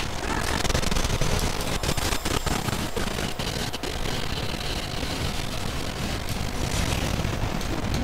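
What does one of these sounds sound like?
Loud explosions boom and roar.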